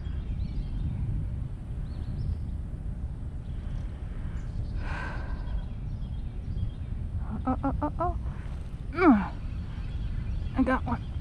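Wind rumbles steadily outdoors by the water.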